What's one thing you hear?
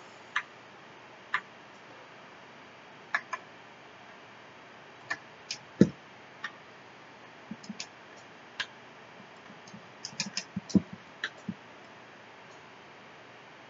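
Short electronic game blips and bleeps sound in quick bursts.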